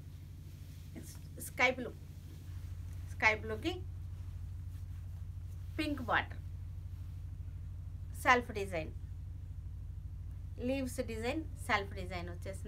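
A woman speaks calmly and clearly in short phrases, close to a microphone.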